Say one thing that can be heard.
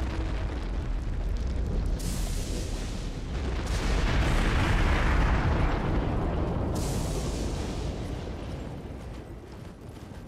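A horse's hooves gallop over snow.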